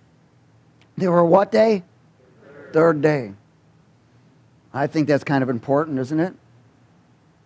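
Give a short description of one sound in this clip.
A middle-aged man speaks calmly and expressively through a microphone.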